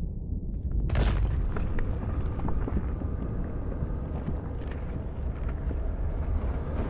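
Magical energy crackles and roars.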